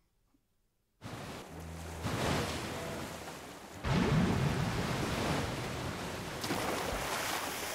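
Sea waves wash and roll steadily.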